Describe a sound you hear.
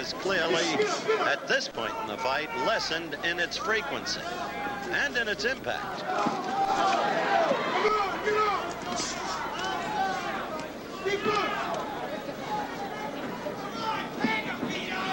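A large crowd cheers and shouts throughout.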